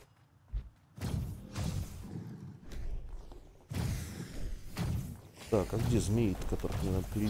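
Magic blasts and impacts burst and crackle during a fight.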